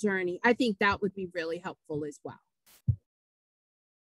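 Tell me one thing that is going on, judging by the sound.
A woman speaks calmly into a microphone on an online call.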